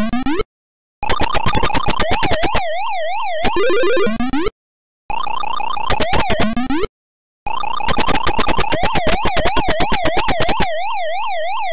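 Quick electronic blips chatter in a fast rhythm.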